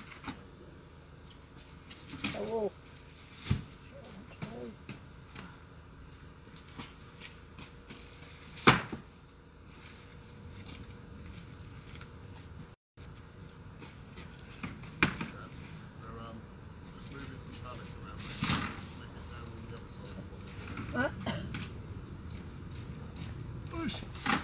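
Wooden pallets knock and thud as workers handle them.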